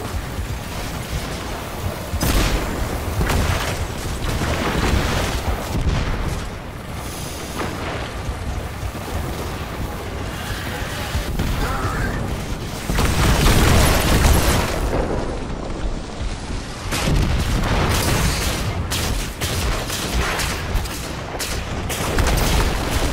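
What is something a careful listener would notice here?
Gunfire from a game weapon crackles in rapid bursts.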